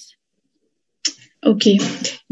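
A second young woman speaks calmly over an online call.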